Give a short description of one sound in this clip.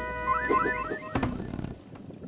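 A bright electronic chime jingles in quick rising notes.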